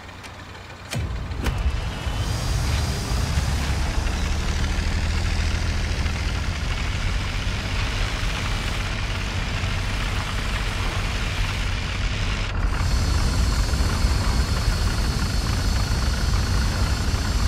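Tank tracks clatter and squeak over the ground.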